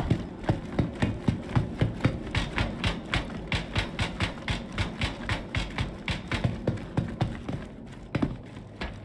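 Footsteps thud in a steady rhythm on a hard metal floor.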